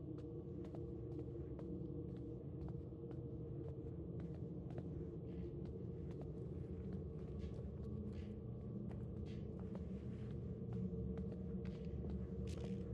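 Footsteps walk across a hard, debris-strewn floor.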